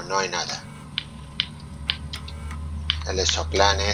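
Short electronic beeps click as a computer menu is scrolled.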